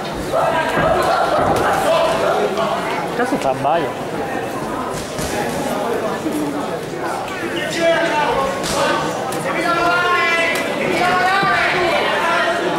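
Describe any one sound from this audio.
A crowd of spectators shouts and calls out in an echoing hall.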